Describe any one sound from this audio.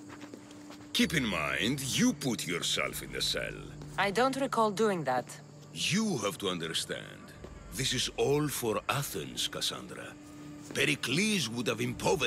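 A middle-aged man speaks, close by.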